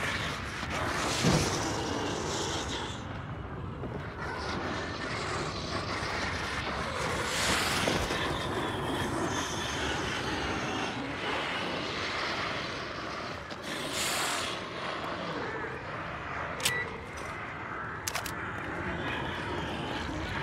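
Footsteps crunch on dirt and wooden boards.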